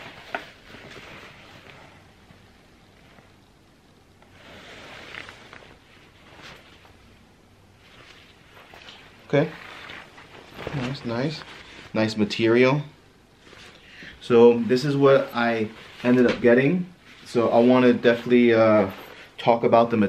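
Fabric rustles as hands handle a pair of mesh shorts.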